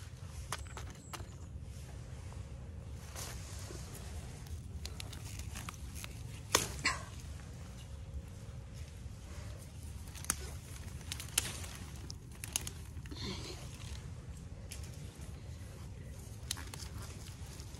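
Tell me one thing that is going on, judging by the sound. Plant stems rustle as they are moved by hand.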